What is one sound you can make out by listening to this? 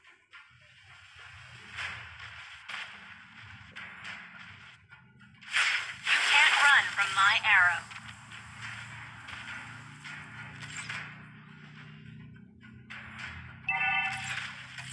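Game sound effects of spells and attacks crackle and clash.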